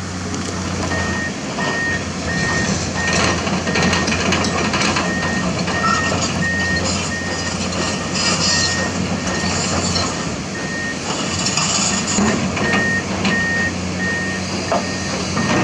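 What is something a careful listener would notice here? Rocks and dirt scrape and clatter in an excavator bucket.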